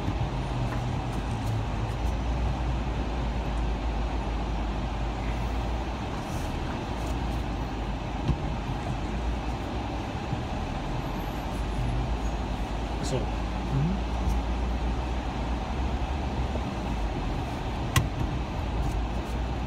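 A car engine hums steadily from inside a slow-moving car.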